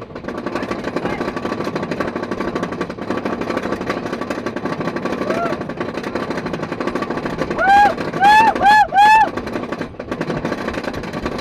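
A roller coaster rattles and rumbles along its track.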